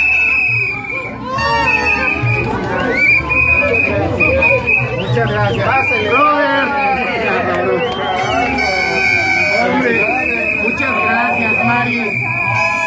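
A crowd of men and women talk and shout excitedly close by.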